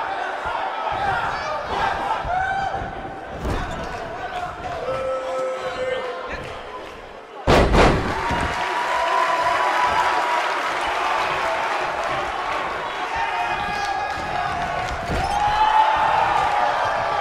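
A large crowd cheers and chants steadily in a big arena.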